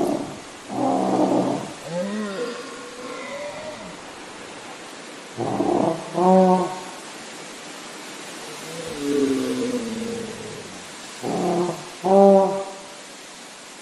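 A large creature roars and growls loudly, again and again.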